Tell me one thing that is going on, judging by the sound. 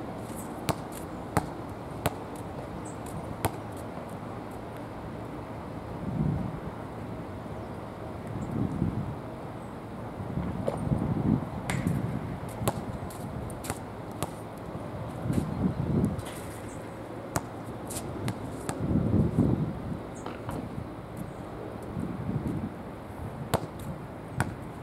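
A basketball bounces on a hard court outdoors.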